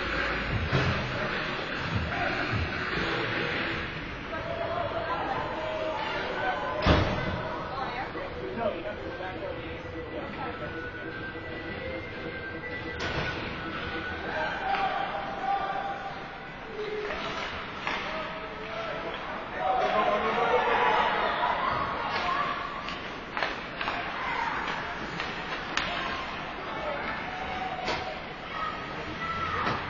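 Players call out and shout across the ice.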